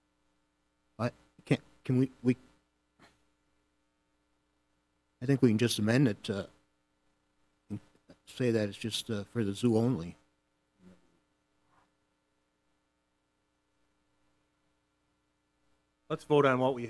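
A man speaks calmly over a microphone in short phrases, with long pauses.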